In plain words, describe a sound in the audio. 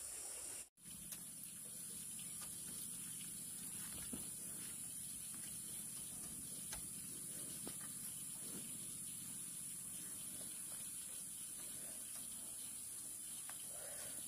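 Bamboo strips knock and rattle against each other.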